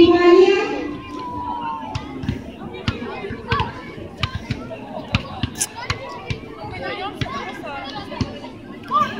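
A crowd chatters outdoors, with many voices at a distance.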